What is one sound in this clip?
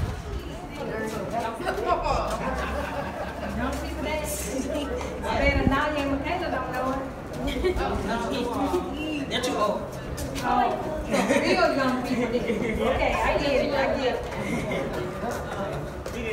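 Several young people talk and shout with excitement close by, echoing in a narrow tunnel.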